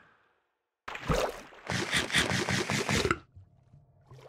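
Food is chewed with rapid crunching bites.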